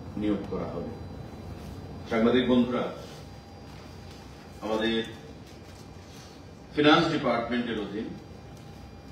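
A man speaks calmly into a microphone, reading out in short phrases with pauses.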